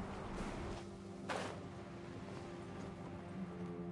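Wind rushes past during a glide.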